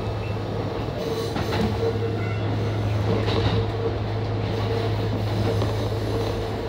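Wheels squeal on a curve in the track.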